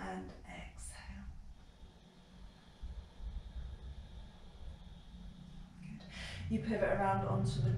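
A woman speaks calmly and clearly nearby, giving instructions.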